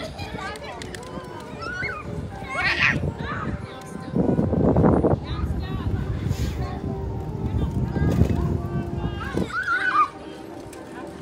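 A small child squeals and babbles.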